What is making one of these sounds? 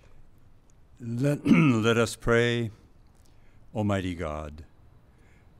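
An elderly man speaks slowly into a microphone outdoors.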